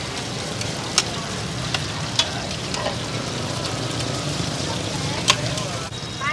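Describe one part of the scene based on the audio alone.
Metal spatulas scrape and clink against a pan.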